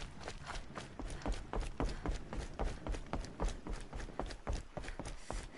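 Footsteps thud on a wooden walkway.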